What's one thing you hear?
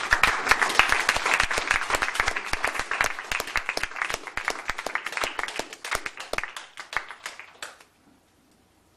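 Drums and cymbals play quickly and loudly.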